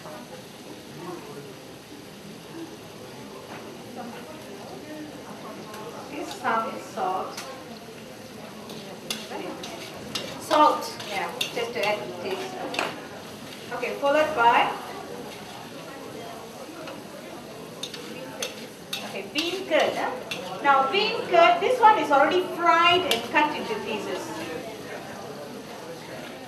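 Food sizzles gently in a hot pan.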